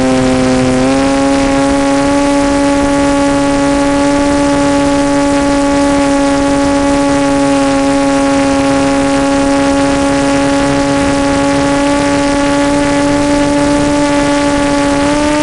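Small drone motors whine loudly and steadily, with the pitch stepping up briefly near the start.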